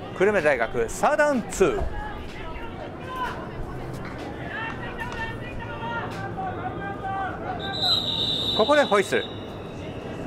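Young men shout calls out on an open field.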